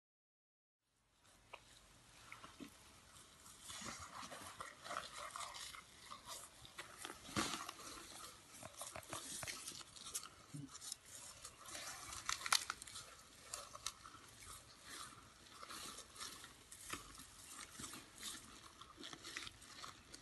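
A young elephant rustles and munches dry hay close by.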